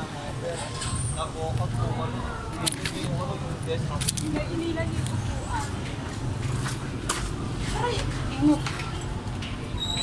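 Young people chat casually nearby, outdoors.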